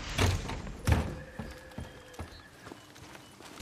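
Footsteps tread on wooden boards.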